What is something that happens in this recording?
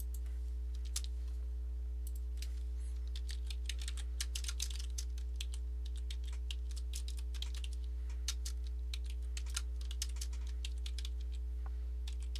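Keys clack quickly on a computer keyboard.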